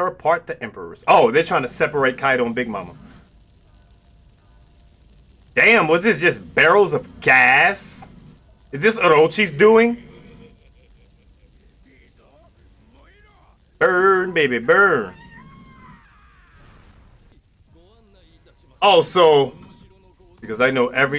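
A man talks with animation, close to a microphone, in bursts with pauses.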